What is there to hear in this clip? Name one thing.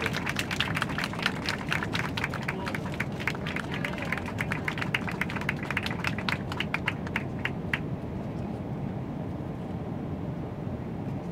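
An aircraft cabin hums with a low, steady engine rumble.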